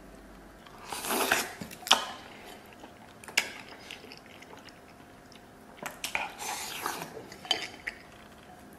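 A man slurps and chews food noisily.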